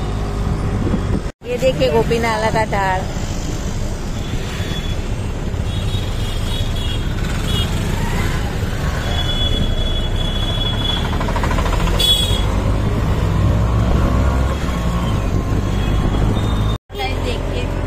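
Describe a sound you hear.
Engines of motorbikes and auto rickshaws putter close by.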